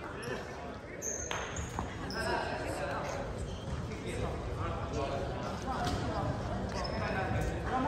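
Shoes squeak sharply on a gym floor.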